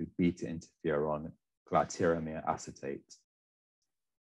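A young man speaks calmly through a microphone in an online call.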